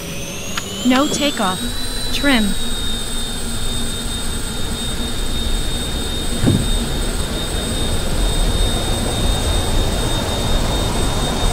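A jet engine whines, rising in pitch and then holding steady.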